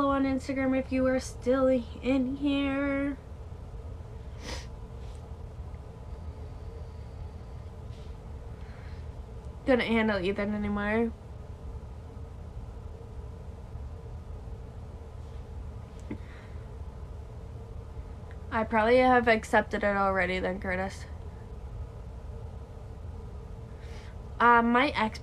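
A young woman talks close by, in short bursts with long pauses.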